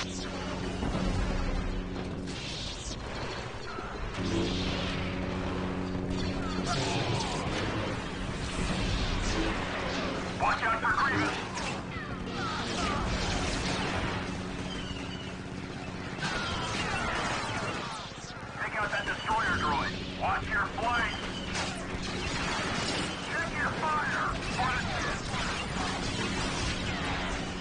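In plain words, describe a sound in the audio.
Energy swords hum and clash with sharp crackles.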